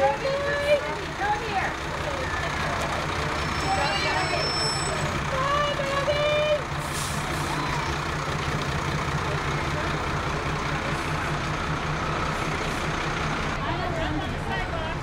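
A fire engine's motor rumbles steadily as it rolls slowly past.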